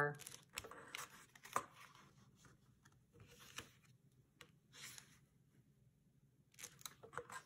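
A bone folder scrapes and rubs along creased paper.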